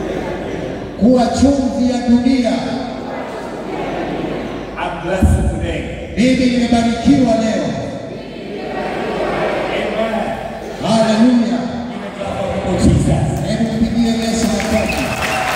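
A man speaks with animation through a microphone and loudspeakers in an echoing hall.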